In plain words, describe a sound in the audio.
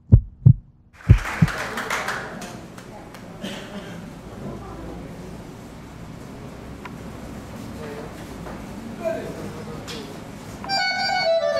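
A crowd murmurs quietly in a large room.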